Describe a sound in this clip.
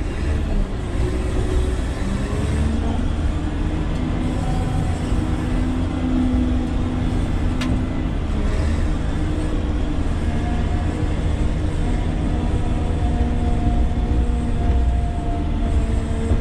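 A grader blade scrapes through dirt.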